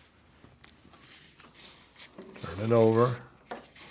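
Waxed thread rasps as it is pulled through leather.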